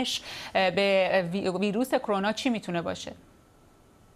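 A woman speaks calmly into a studio microphone.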